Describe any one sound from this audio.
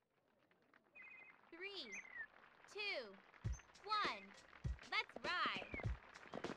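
A countdown beeps before a race start.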